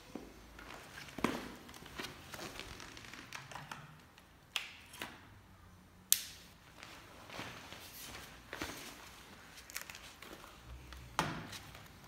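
Hard plastic and wood knock and click sharply as a hand-held device is handled.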